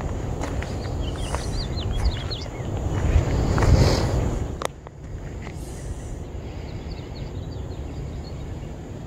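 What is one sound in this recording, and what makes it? Goslings peep in high, thin chirps.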